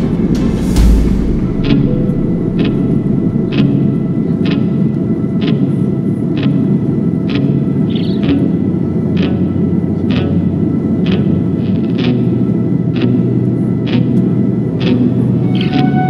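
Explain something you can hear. A jet engine roars steadily in a loud drone.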